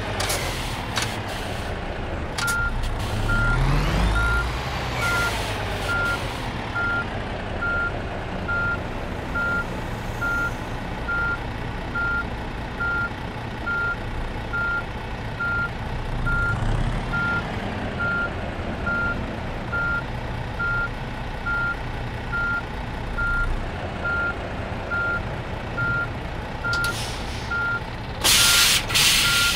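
A truck engine rumbles steadily at low speed.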